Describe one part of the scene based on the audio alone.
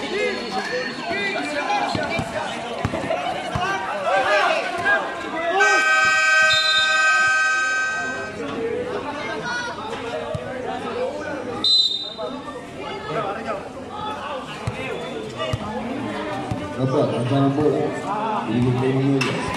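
A crowd of spectators chatters and calls out nearby.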